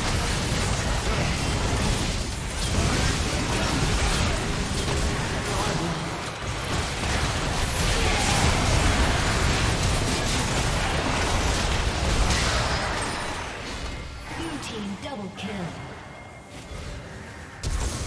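Spell effects and clashing combat sounds burst and crackle from a video game.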